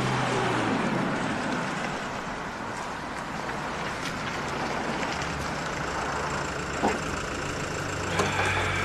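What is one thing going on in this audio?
A car engine runs as a vehicle drives slowly past.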